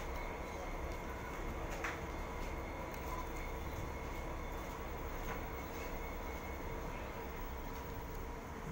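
A passenger train rumbles slowly along the track close by.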